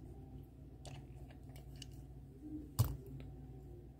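A small toy car clicks down onto a plastic stand.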